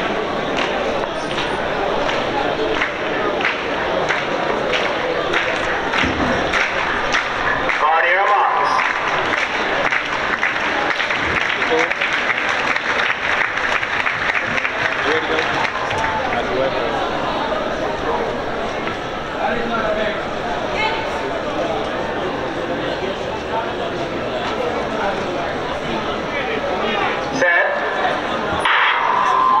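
A large crowd chatters and murmurs outdoors in an open stadium.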